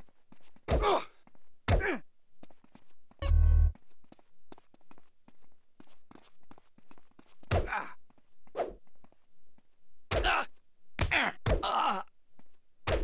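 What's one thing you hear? Men grunt and cry out in pain.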